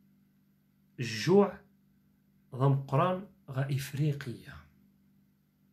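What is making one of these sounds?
A man speaks calmly and close to a microphone.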